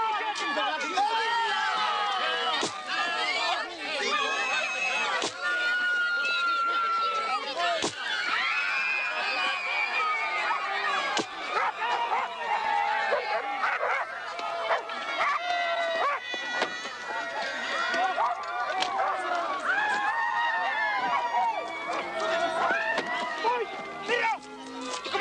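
A crowd of men and women shouts and clamours excitedly nearby.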